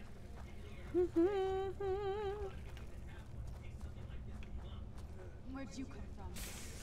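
A young woman talks and vocalises close to a microphone.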